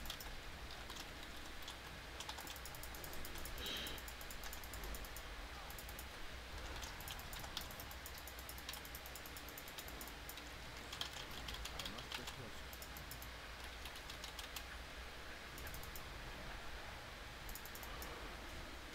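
Magic spells zap and crackle in rapid bursts.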